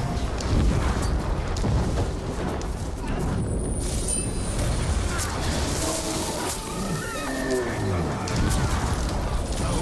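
A sword slashes and clangs in combat.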